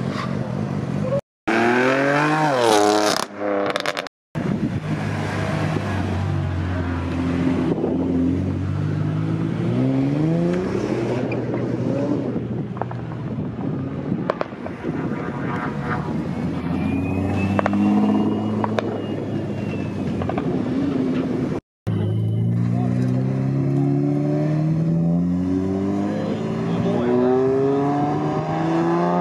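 Sports car engines roar and rev loudly, rising and falling in pitch.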